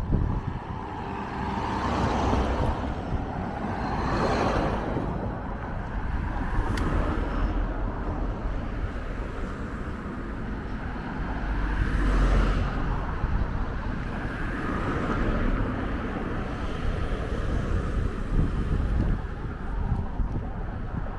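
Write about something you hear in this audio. Wind buffets and rumbles outdoors throughout.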